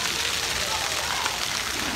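A water jet splashes and sprays steadily.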